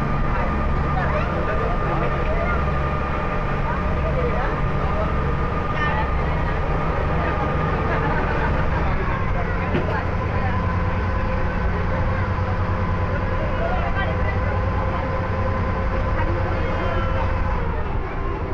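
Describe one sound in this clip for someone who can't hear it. Water splashes against the hull of a boat.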